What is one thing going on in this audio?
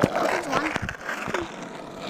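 A boy talks close by.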